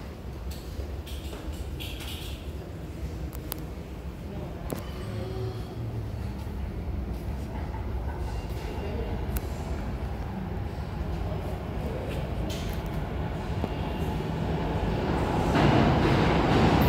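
A subway train rumbles closer through an echoing tunnel, growing steadily louder.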